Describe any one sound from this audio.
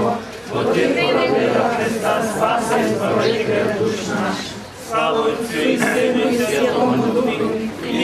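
A crowd of adults talks and murmurs close by, outdoors.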